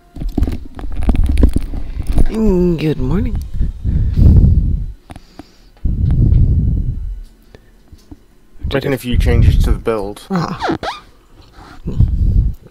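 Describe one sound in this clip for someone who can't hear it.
A man talks with animation close to a microphone, with pauses.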